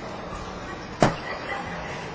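A dart thuds sharply into a board.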